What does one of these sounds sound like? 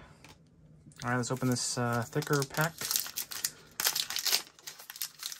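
A foil card pack crinkles and tears as it is opened.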